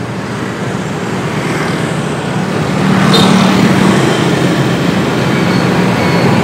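Traffic rumbles past outdoors.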